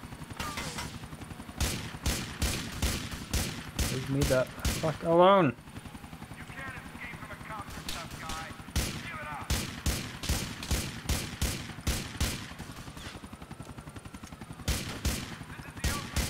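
A helicopter's rotor thumps steadily.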